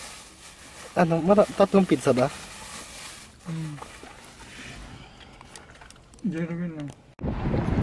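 A young man speaks casually, close by.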